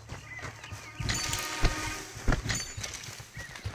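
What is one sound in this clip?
Leafy plants brush and swish as someone pushes through them.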